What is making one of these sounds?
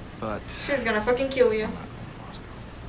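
A woman speaks calmly.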